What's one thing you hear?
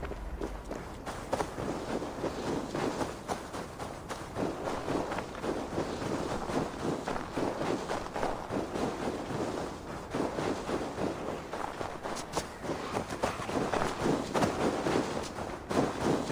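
Footsteps crunch through deep snow at a quick pace.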